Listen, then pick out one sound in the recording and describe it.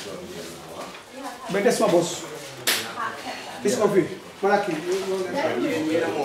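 Several adults talk casually nearby.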